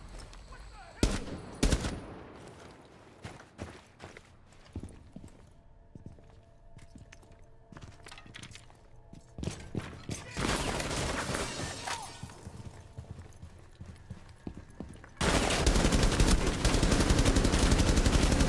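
A rifle fires in sharp, loud shots and bursts.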